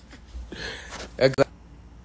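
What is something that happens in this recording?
A man laughs close to a phone microphone.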